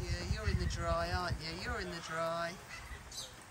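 A parrot squawks and chatters in a warbling voice close by.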